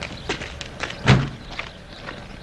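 A van door slams shut.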